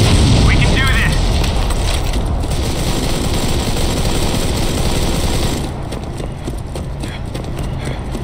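Footsteps tread on hard pavement.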